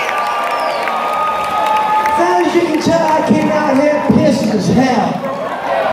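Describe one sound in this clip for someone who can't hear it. A man sings into a microphone over the band.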